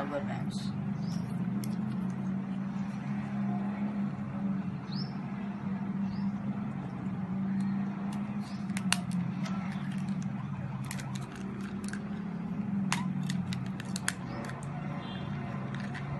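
A cardboard matchbox rustles and taps as it is handled.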